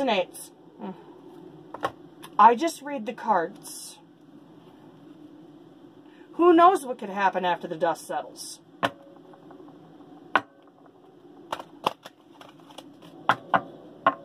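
Cards shuffle and tap together in hands.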